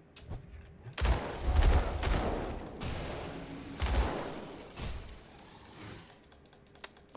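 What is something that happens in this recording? Magic spells crackle and boom in a fierce fight.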